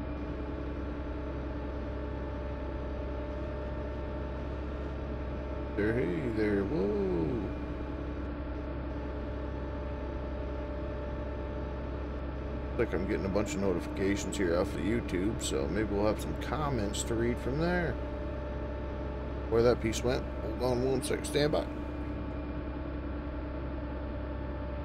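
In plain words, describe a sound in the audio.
A heavy machine's engine hums steadily.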